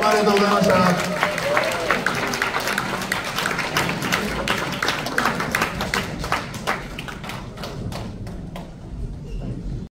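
Drums beat in a steady rhythm.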